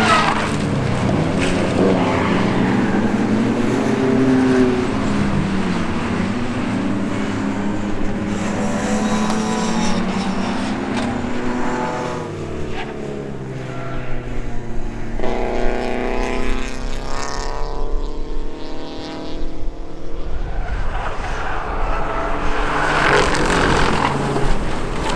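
Tyres skid and spray gravel on the dirt.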